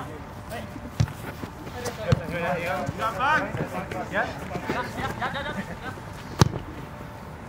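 A football is kicked with sharp thuds.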